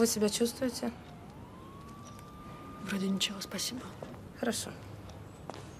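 A middle-aged woman speaks calmly.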